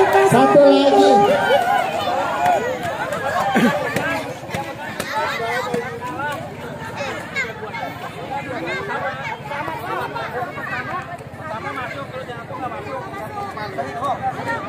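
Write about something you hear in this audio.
A crowd of women and men chatter and call out outdoors.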